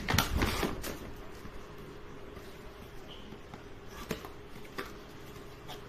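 Cardboard rustles and scrapes as a box is opened by hand.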